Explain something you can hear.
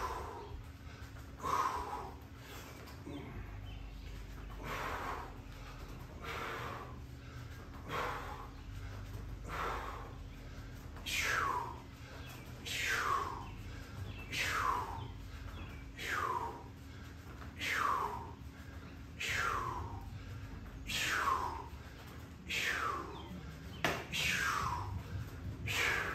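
A woman breathes out sharply in a steady rhythm with each effort.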